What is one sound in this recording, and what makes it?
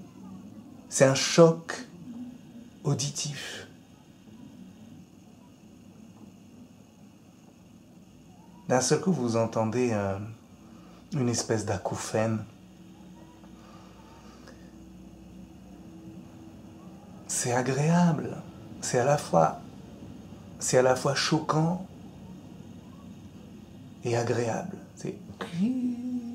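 A middle-aged man speaks calmly in short phrases close to the microphone.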